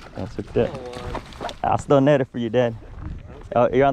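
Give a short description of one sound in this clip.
A fishing lure splashes into the water.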